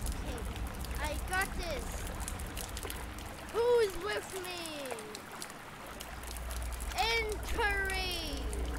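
A young boy talks excitedly into a microphone.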